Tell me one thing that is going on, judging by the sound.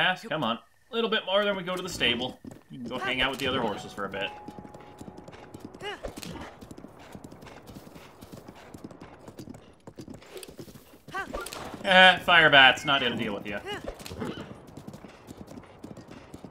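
Horse hooves thud steadily at a gallop.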